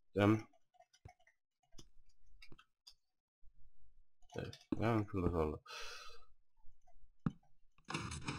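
Blocks are set down with short, soft clicks.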